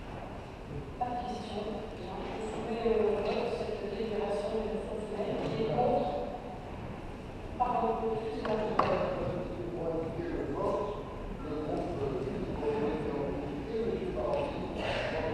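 A man speaks steadily into a microphone, heard through loudspeakers in a large echoing hall.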